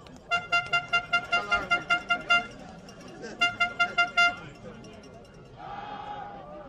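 Football players collide and tackle on the field.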